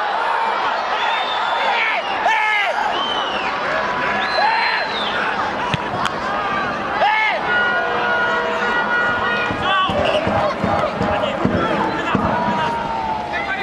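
A large crowd cheers loudly throughout.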